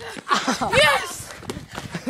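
Boys shout excitedly nearby outdoors.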